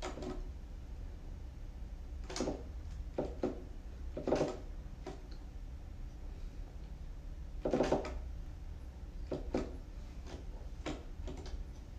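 Plastic keyboard keys tap and thump softly.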